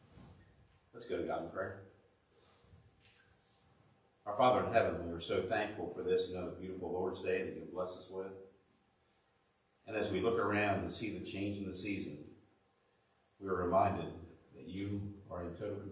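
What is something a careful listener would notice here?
A man speaks calmly through a microphone in an echoing room.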